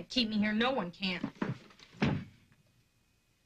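A young woman cries out in distress, close by.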